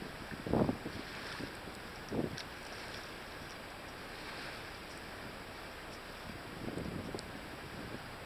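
Wind gusts buffet outdoors.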